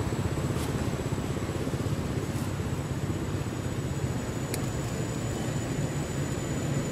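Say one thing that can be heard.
Small animals patter and rustle through dry leaves on grass.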